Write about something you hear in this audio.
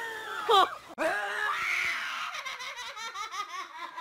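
A young girl screams loudly.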